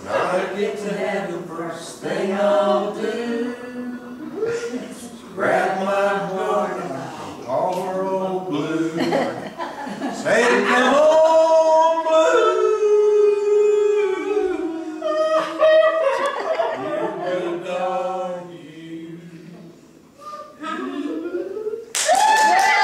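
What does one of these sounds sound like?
A group of adults sings together into a microphone, close by.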